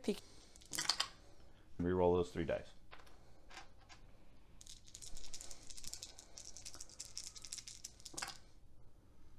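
Dice tumble and clatter onto a soft felt surface.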